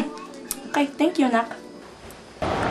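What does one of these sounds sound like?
A young woman speaks briefly and casually up close.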